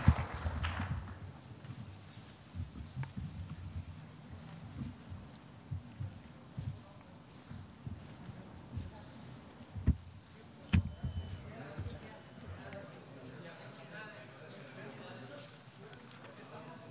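A crowd of men murmurs quietly.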